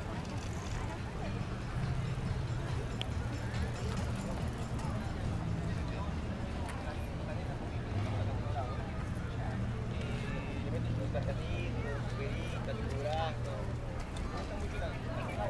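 A crowd of people chatter outdoors nearby.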